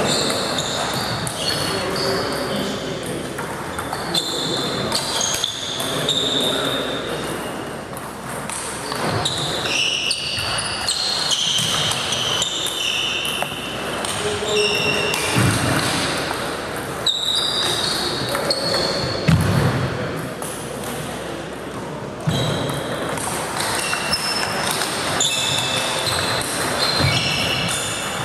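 Sports shoes squeak on the floor.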